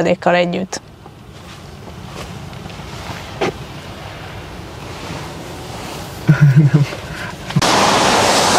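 Rain patters on a car roof.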